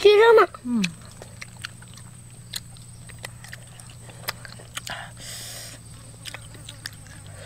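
Food clicks and scrapes softly against a bowl.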